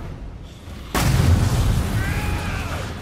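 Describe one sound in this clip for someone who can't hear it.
A deep explosion booms.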